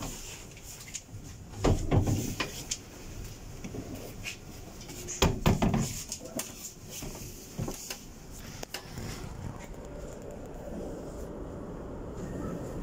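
A subway train rumbles and clatters on the rails as it slows into a station, heard from inside the car.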